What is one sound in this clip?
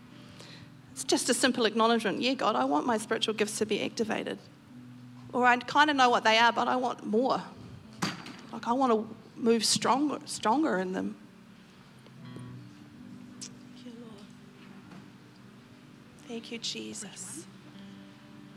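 A middle-aged woman speaks earnestly into a microphone over loudspeakers.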